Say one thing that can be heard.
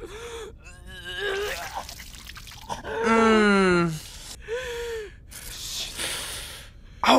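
A young man groans and whines in mock distress.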